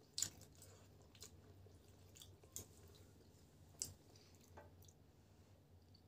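A fork and spoon clink against a bowl.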